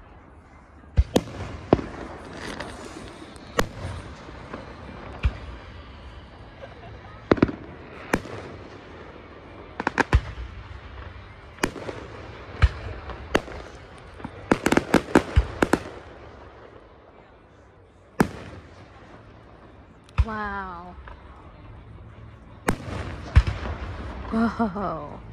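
Distant aerial fireworks burst with sharp bangs and crackles.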